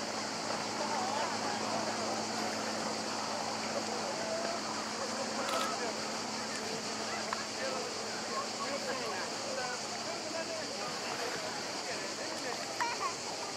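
Water laps gently against rocks.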